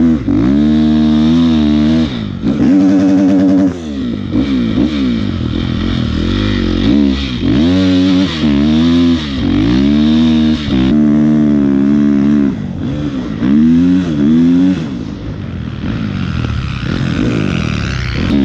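A dirt bike engine revs up and down close by, rising and falling in bursts.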